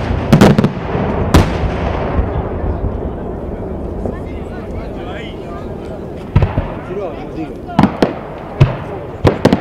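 Fireworks boom loudly overhead, outdoors.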